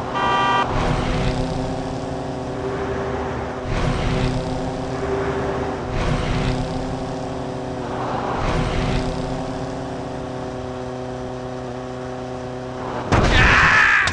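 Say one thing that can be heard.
A motorcycle engine hums steadily at high speed.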